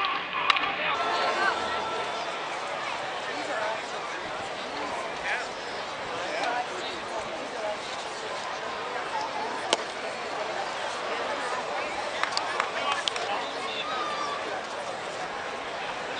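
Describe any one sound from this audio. A stadium crowd murmurs and chatters in the distance.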